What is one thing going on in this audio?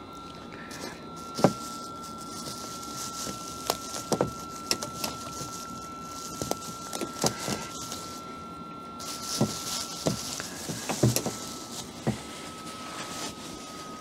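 A cloth rubs and scrubs against a metal lock.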